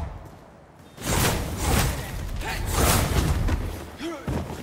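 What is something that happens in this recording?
Fire bursts and roars in short blasts.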